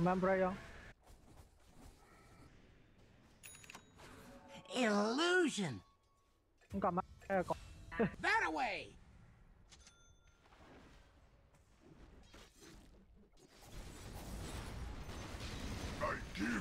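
Game spell effects whoosh and crackle during a fight.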